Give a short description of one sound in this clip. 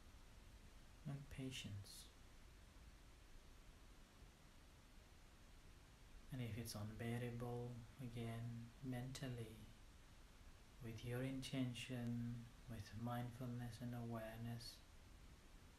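A man speaks calmly and slowly into a close microphone, with long pauses.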